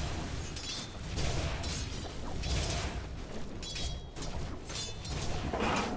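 Game characters clash with sharp magical bursts and metallic strikes.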